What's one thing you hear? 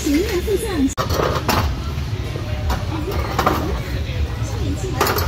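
Several men and women chat nearby at a table.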